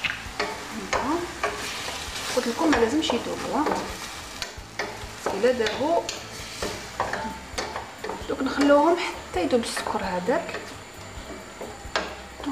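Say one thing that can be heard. A wooden spoon scrapes and knocks against a metal pan.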